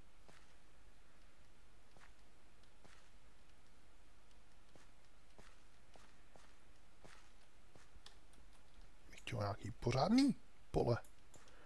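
Crops are broken off with soft rustling pops.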